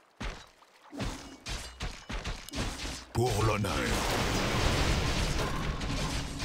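Swords clash and strike repeatedly in a noisy battle.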